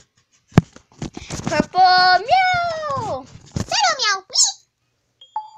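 A young girl speaks and sings playfully close to the microphone.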